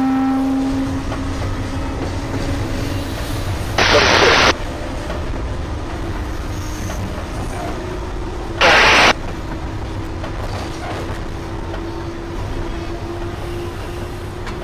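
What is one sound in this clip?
A train rumbles steadily past on the tracks.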